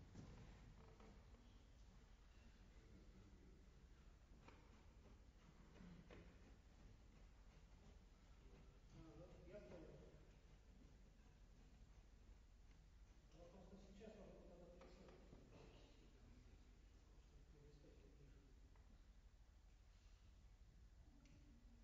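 A piano plays softly and slowly in a large echoing hall.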